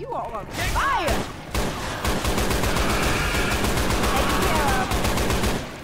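A rifle fires rapidly in long bursts.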